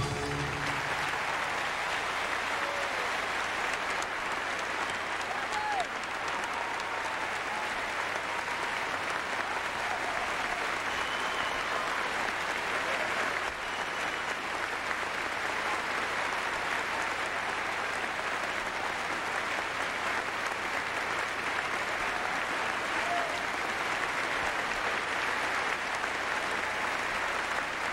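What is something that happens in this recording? An audience cheers and whistles.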